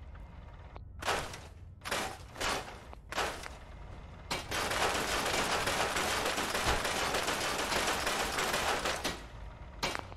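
Short clattering bursts sound one after another, then a longer rushing clatter.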